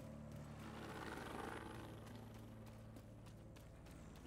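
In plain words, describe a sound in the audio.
Footsteps clank on metal grating.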